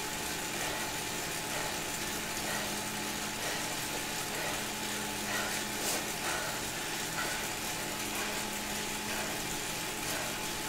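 A bike trainer whirs steadily under fast pedalling.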